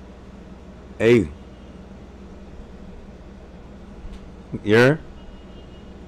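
A man lets out short, loud exclamations close to a microphone.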